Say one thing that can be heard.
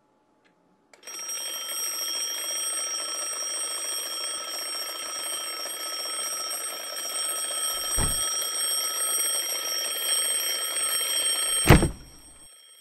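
An alarm clock rings loudly and steadily.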